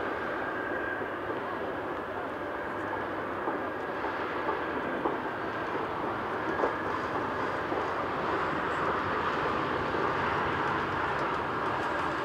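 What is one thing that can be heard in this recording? A jet airliner's engines roar loudly as it takes off and climbs away.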